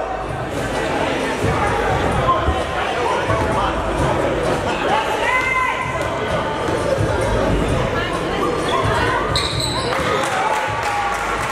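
Spectators chatter in the stands.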